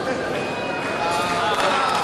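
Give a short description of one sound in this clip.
A woman cheers loudly nearby.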